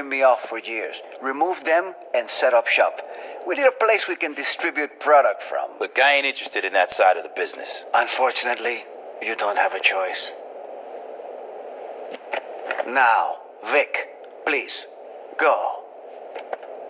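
A man speaks smoothly and persuasively, close by.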